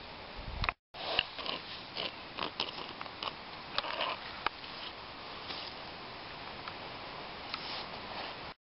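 Plastic toys scrape and tap in sand close by.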